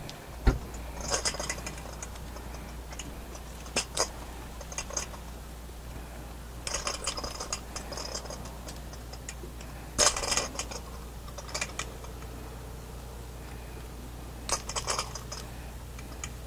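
A spoon scrapes and clinks against a metal bowl in short bursts.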